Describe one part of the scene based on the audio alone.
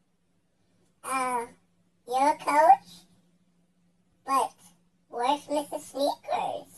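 A child speaks in a high voice, close by.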